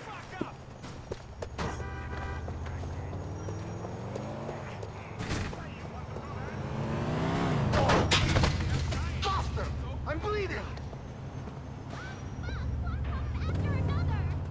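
Footsteps slap on pavement as a man runs.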